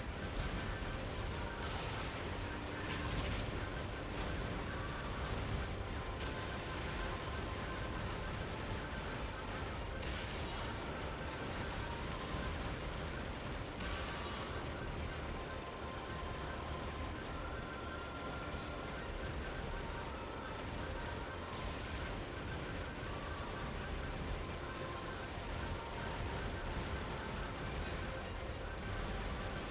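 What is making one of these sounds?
Rapid gunfire crackles steadily.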